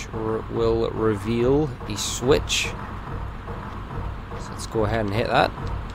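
Quick footsteps run on a stone floor.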